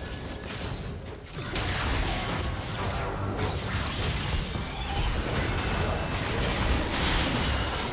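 Fantasy spell blasts and combat effects crackle and burst in quick succession.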